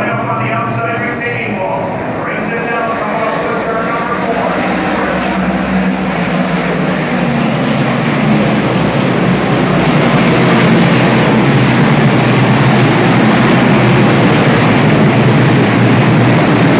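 A large crowd murmurs and cheers in the stands.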